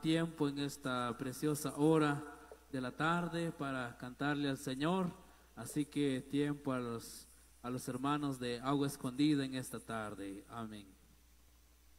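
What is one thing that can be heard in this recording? A man speaks with animation through a loudspeaker.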